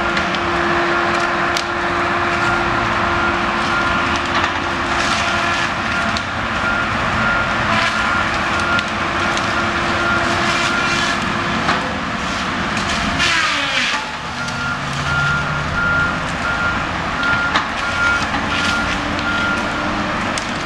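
Train wheels clatter and squeal on the rails.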